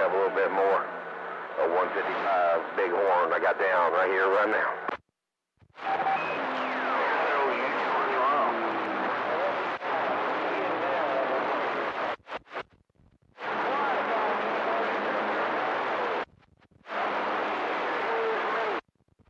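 A radio receiver hisses with loud static that cuts in and out.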